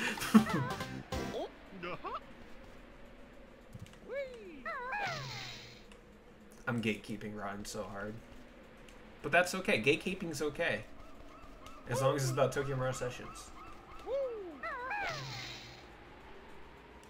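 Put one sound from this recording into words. Playful cartoon sound effects chirp and boing.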